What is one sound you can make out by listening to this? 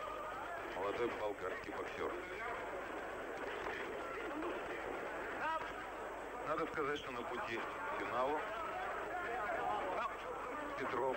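A crowd shouts and cheers in a large arena.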